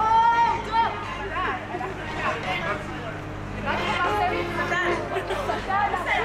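Several women and men chat with animation nearby outdoors.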